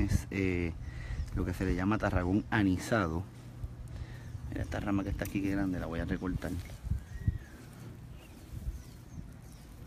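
Scissors snip through grass.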